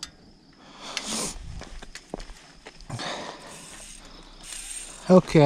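A bicycle rattles and clicks as it is moved about.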